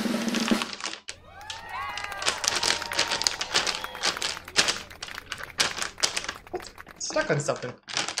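A plastic foil bag crinkles and rustles loudly.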